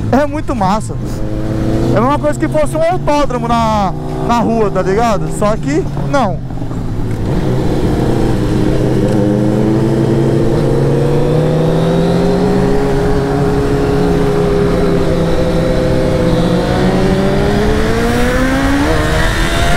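A motorcycle engine drones steadily and rises in pitch as it speeds up.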